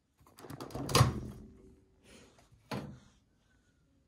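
A microwave door clicks open.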